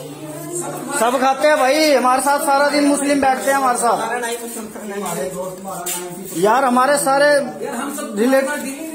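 A man speaks loudly and agitatedly nearby.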